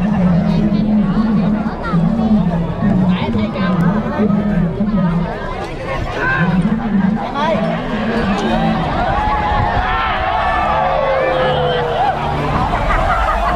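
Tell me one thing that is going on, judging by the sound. A large outdoor crowd of men and women shouts and cheers.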